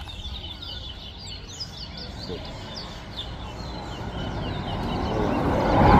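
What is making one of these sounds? Caged birds chirp and twitter in quick high calls.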